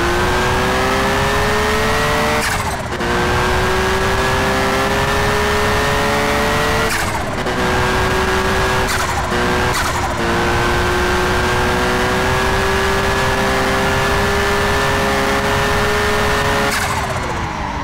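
A car engine roars at high revs, climbing in pitch and dropping sharply with each gear change.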